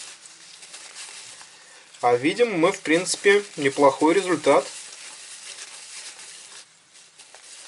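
A paper towel rustles as it rubs over a coin.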